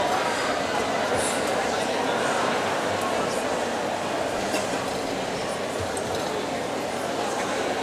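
An orchestra plays in a large echoing hall.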